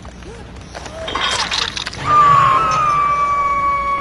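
A heavy metal hook clangs loudly.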